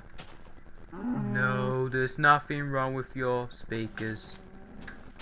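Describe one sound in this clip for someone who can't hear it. A cow moos loudly nearby.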